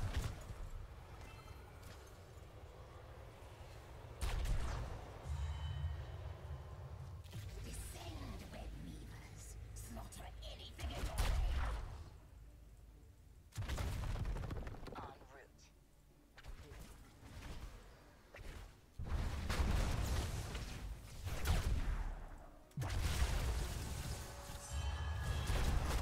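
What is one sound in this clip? Game battle sounds of spells, blasts and clashing weapons come in bursts.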